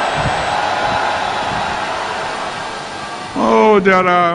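A large crowd murmurs and cheers.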